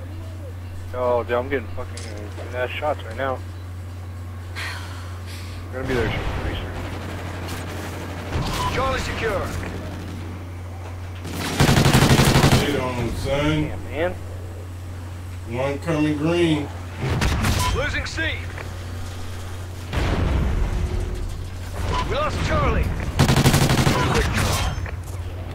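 A man talks with animation into a microphone.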